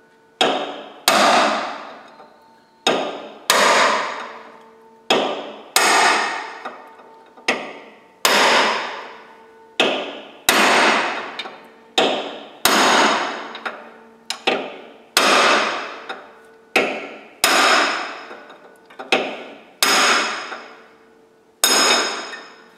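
A metal tool strikes metal in sharp, ringing blows, again and again.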